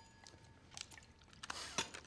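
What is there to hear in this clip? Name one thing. Wine pours from a carafe into a glass.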